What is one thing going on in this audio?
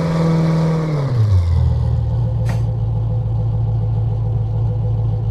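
A car engine hums, its pitch dropping as the car slows, then idles steadily.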